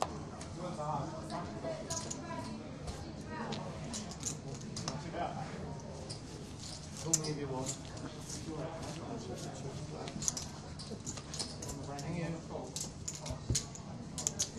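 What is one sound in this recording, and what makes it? Playing cards are dealt and slid across a felt table.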